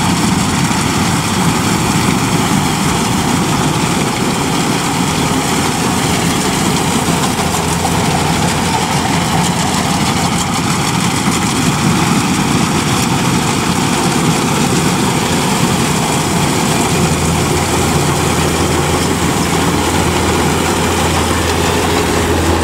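A harvester's cutting machinery whirs and rattles through the crop.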